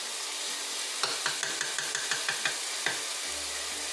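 A wooden spoon taps several times against the rim of a pot.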